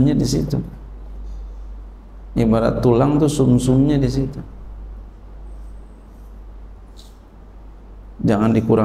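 A man speaks calmly into a microphone, with pauses between phrases.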